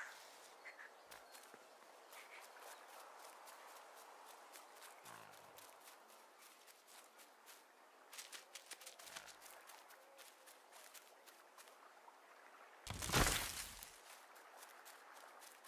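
Small footsteps patter on stone and grass.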